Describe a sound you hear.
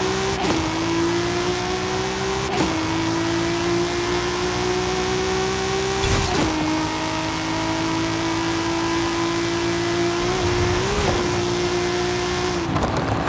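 A car engine roars at high revs, rising in pitch and dropping briefly with each gear change.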